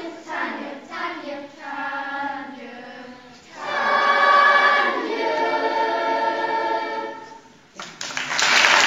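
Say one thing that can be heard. A large children's choir sings together in an echoing hall.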